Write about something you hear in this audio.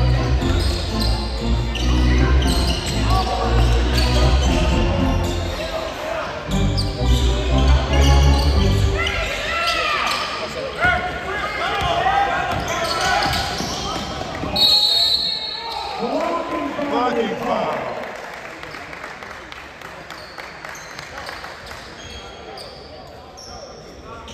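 Spectators chatter and cheer nearby in an echoing gym.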